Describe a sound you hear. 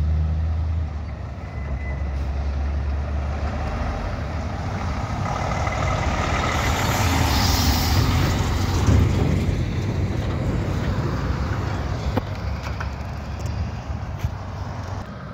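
A heavy diesel truck engine rumbles loudly as the truck approaches and passes close by.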